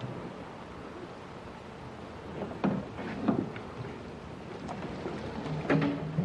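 A paddle knocks against the side of a canoe.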